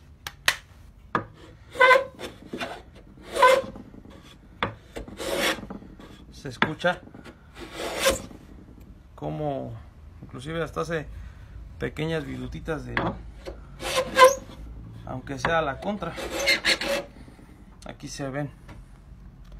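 A hand plane shaves wood in long rasping strokes.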